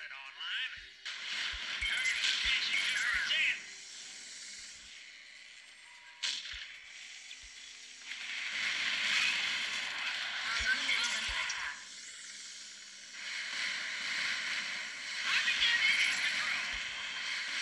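Tank guns fire in a video game battle.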